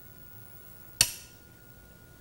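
A wooden game piece clacks sharply onto a board.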